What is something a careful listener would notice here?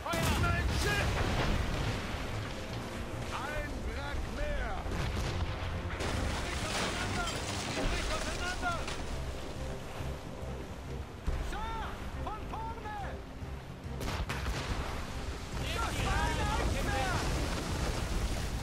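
Cannons boom in the distance.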